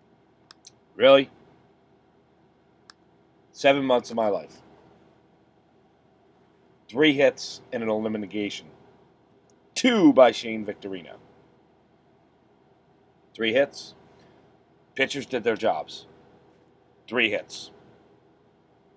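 A middle-aged man speaks close to a microphone in short bursts with pauses.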